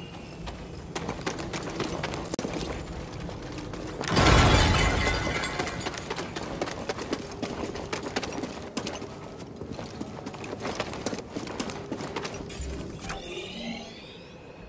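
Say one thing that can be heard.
Footsteps run quickly over a stone floor.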